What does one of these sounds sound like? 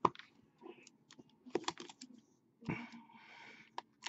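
A small knife slits a plastic wrapper.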